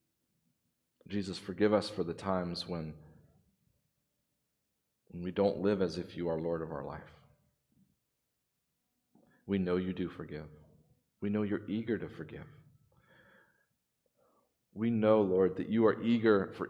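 A man speaks slowly and calmly into a microphone, in pauses, in a room with some echo.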